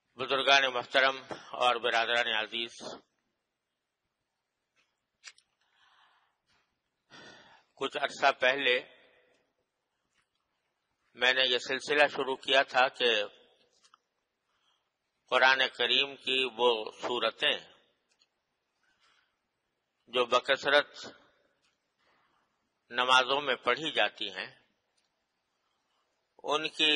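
An elderly man speaks calmly in short phrases with pauses between them.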